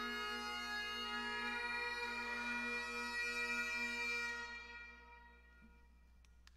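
A bagpipe plays a tune with a steady drone in a large echoing hall, then stops.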